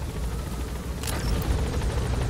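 A game menu closes with a short swishing sound.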